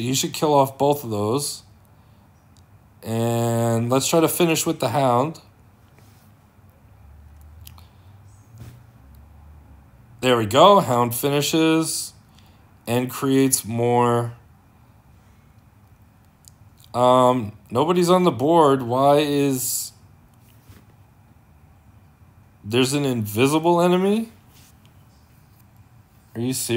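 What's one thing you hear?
A middle-aged man talks calmly and close to a microphone, in bursts with pauses.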